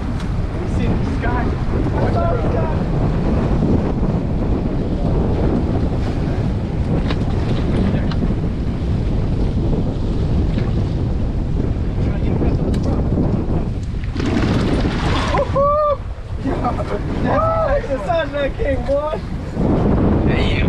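Wind roars steadily across the microphone outdoors.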